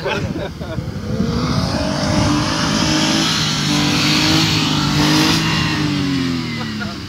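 A vehicle engine revs hard and strains as it climbs.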